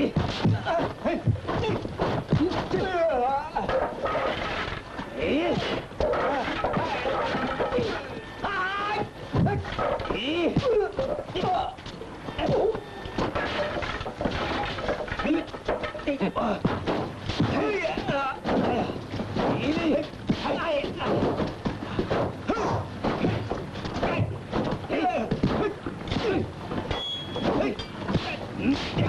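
Punches and blows land with sharp smacks.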